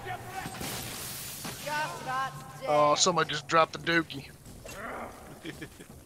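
Weapons strike and clash in a close fight.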